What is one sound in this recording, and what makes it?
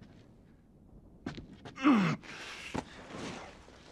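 A canvas bag rustles as it is lifted.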